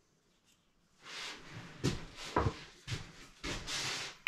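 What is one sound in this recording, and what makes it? Wooden pieces knock and rub against each other.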